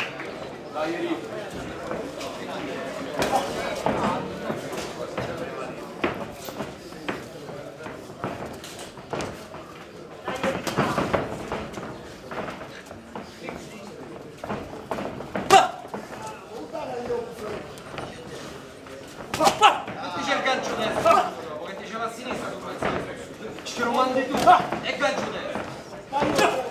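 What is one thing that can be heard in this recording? A crowd murmurs and shouts in an echoing hall.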